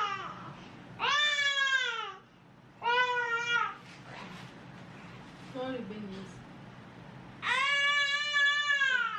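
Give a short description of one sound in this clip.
A toddler cries loudly close by, in long wails.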